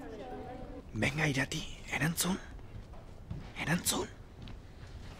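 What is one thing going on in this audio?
A young man speaks in surprise, close by.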